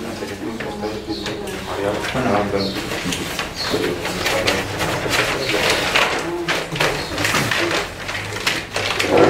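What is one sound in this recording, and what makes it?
Paper rustles as sheets are handed out.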